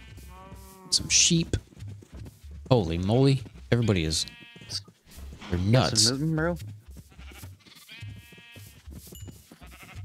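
Sheep bleat.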